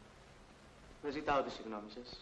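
A young man speaks tensely nearby.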